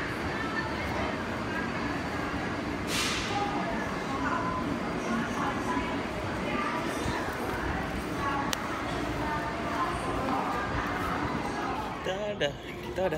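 A busy station hall echoes with a steady murmur of crowd noise.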